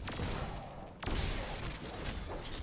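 A heavy melee blow strikes with a crunch.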